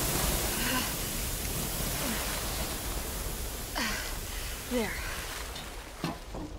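A flamethrower roars with a steady hiss.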